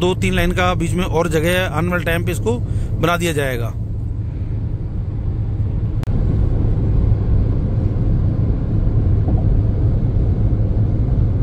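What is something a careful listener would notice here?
A car hums steadily as its tyres roll on the road.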